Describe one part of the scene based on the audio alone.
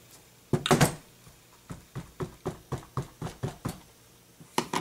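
A rubber stamp taps repeatedly on an ink pad.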